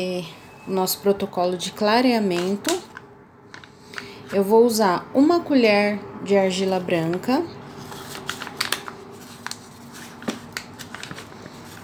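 A plastic bag crinkles as it is handled.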